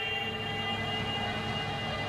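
Water churns and rushes behind a moving boat.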